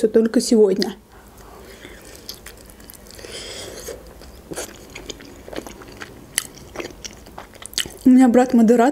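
A young woman chews crispy food with soft crunching and smacking.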